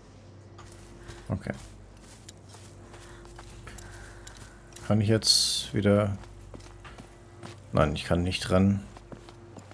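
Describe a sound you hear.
Footsteps crunch on dirt and stone.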